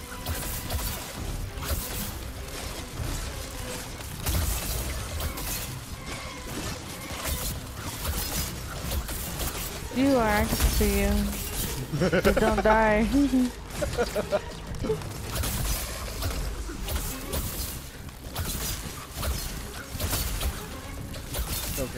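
Weapons clash and slash repeatedly in a fierce fight.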